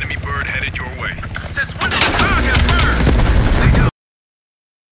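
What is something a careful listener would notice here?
A helicopter fires rockets that explode with loud booms.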